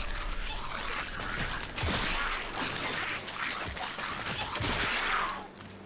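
An arrow strikes a creature with a thud.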